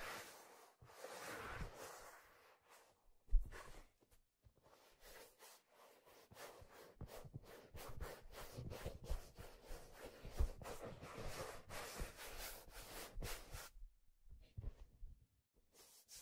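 Hands rub and tap a stiff leather hat close to a microphone, with soft scratching and crinkling.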